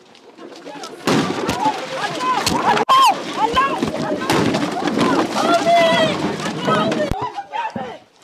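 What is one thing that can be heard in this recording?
A crowd of men and women shout and cry out close by, outdoors.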